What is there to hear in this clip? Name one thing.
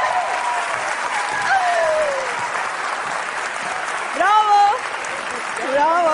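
A crowd claps along.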